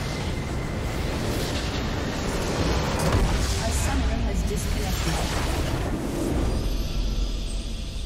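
A massive explosion booms and rumbles.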